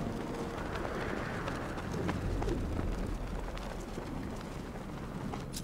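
A cape flaps in the wind.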